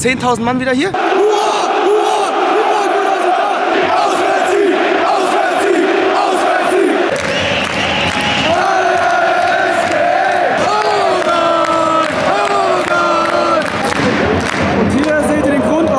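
A large crowd sings and chants loudly.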